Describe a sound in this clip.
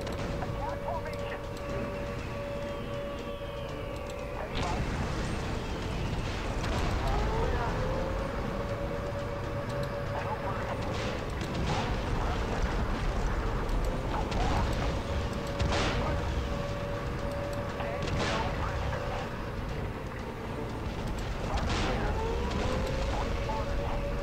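Tank engines rumble low and steady.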